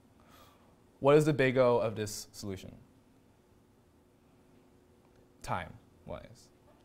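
A young man speaks calmly into a microphone, in short phrases with pauses.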